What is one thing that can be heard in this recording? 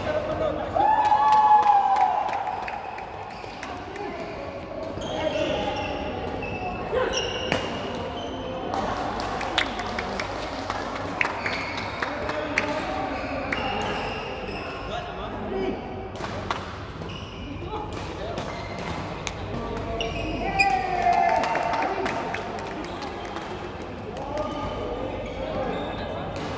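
Young men shout and call out during play.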